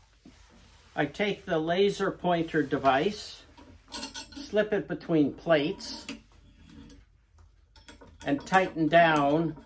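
An elderly man speaks calmly and close by, with pauses.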